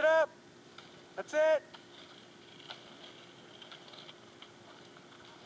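Skateboard wheels roll and rumble on wet asphalt.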